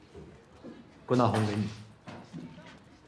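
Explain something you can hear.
A second young man answers quietly.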